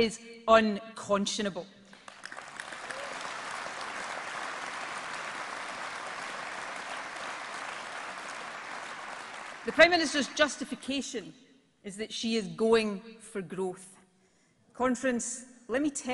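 A middle-aged woman speaks forcefully into a microphone through loudspeakers.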